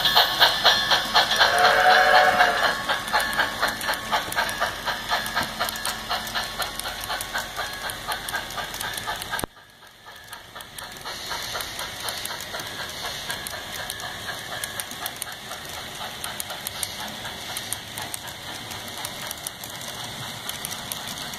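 Model freight cars click and rattle over the track joints.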